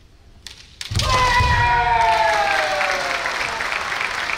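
A man shouts a sharp, drawn-out battle cry.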